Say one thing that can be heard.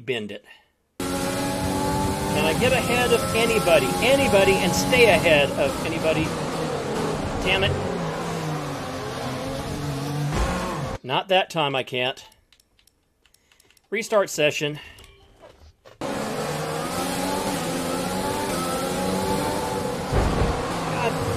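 A racing car engine whines and revs up through the gears.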